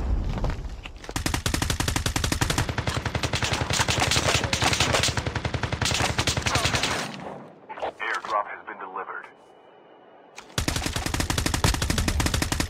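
A rifle fires in rapid bursts close by.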